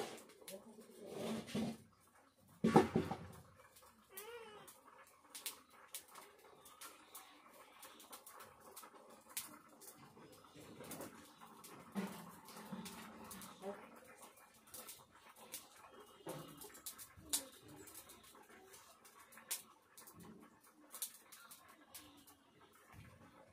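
A wood fire crackles and pops under a pot.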